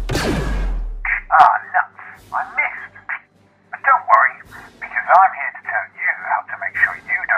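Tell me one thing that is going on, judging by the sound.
A man speaks with animation, muffled through a helmet.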